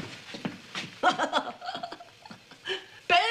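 An elderly woman talks and laughs nearby.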